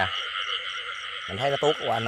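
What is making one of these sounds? A toad croaks close by.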